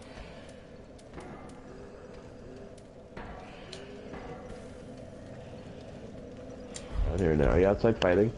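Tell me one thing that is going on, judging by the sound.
A menu cursor clicks softly.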